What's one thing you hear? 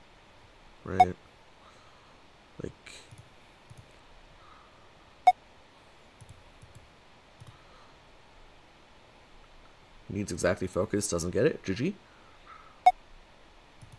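Short clicking sound effects play as menu buttons are pressed.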